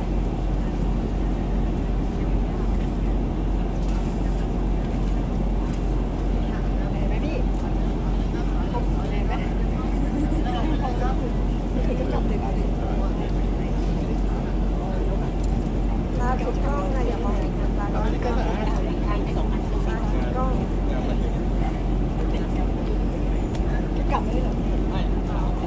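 A crowd of women and men chatter and laugh nearby outdoors.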